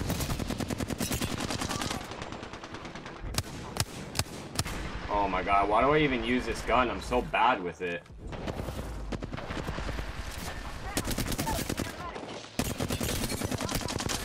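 Rapid gunfire bursts ring out.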